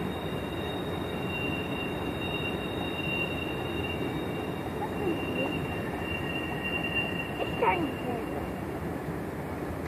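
Train wheels squeal with a high, steady ringing.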